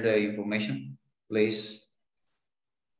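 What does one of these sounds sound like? A man speaks calmly into a microphone over an online call.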